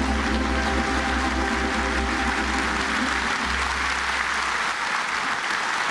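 A male choir and a woman sing together, ending a song.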